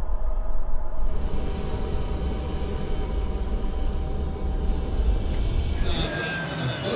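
A car engine hums from inside the car.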